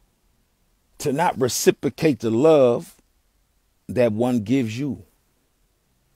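A young man speaks with animation, close to the microphone.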